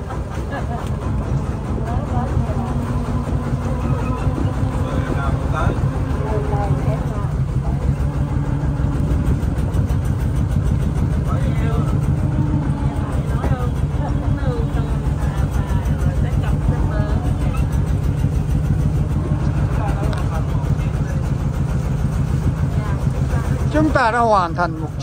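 A boat engine chugs steadily close by.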